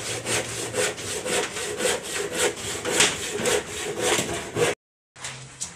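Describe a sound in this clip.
A hammer knocks rapidly and repeatedly on wood.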